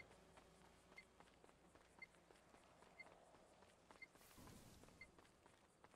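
Footsteps run over sandy ground.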